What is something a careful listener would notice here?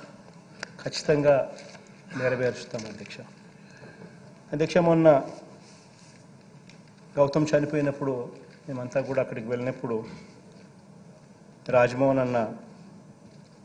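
A man speaks through a microphone in measured phrases with long pauses.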